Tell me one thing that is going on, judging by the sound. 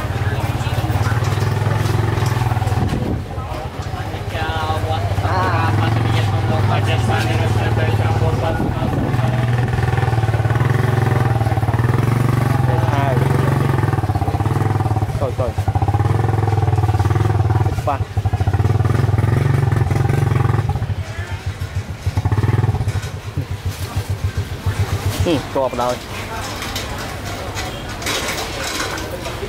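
A crowd of men and women chatters in the background outdoors.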